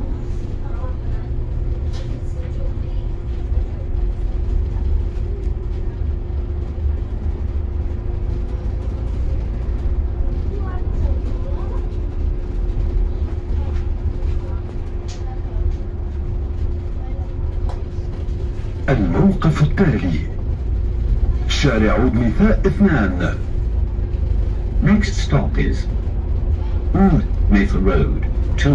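A vehicle's engine hums steadily.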